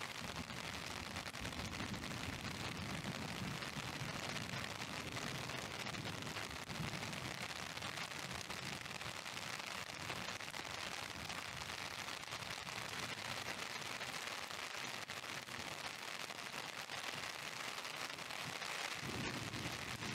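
Rain falls steadily on a wet street outdoors.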